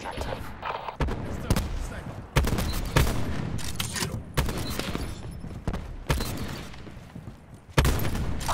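Loud rifle shots crack out one at a time, with a short echo after each.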